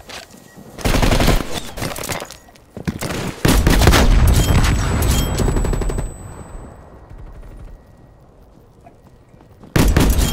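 A rifle fires loud, rapid bursts of gunshots.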